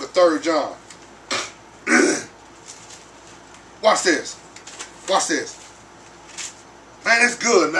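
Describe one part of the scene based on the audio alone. A man reads aloud slowly and calmly, with pauses.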